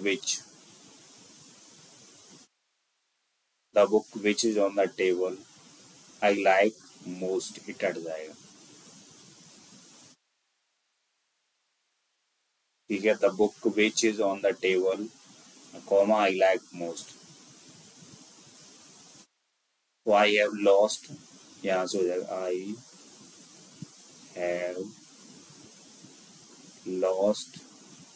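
A man speaks calmly into a close microphone, in short bursts with pauses.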